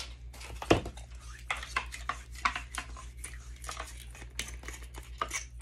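Foam rustles as an item is lifted out of a box insert.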